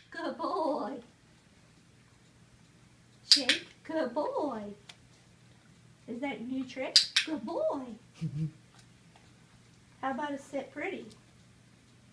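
An adult speaks in short bursts, giving commands to a dog.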